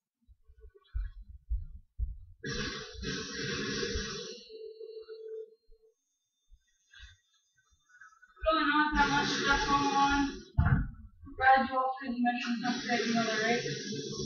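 Video game sounds play through a television speaker in bursts.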